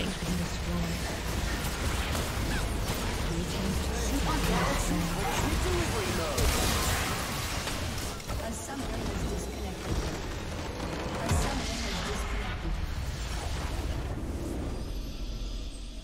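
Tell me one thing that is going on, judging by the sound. Spell effects crackle and blast in a game battle.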